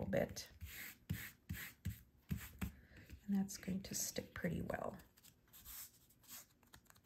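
Hands rub and rustle a strip of paper.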